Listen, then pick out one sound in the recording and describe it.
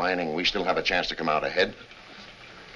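An older man speaks gruffly up close.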